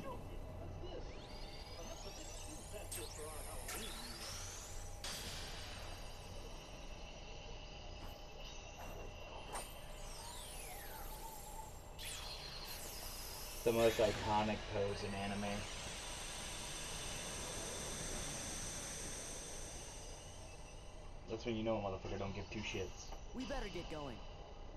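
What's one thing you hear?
Magical shimmering chimes and whooshes sound throughout.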